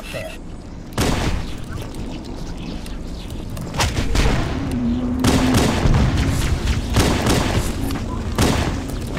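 Energy weapon shots fire in rapid bursts.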